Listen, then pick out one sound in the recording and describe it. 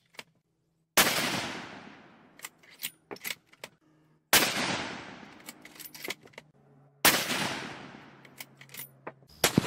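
A rifle fires loud shots that echo away outdoors.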